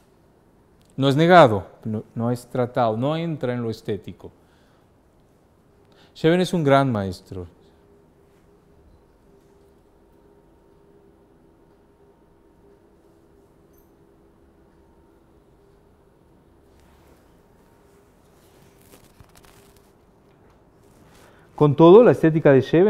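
A man speaks calmly, lecturing.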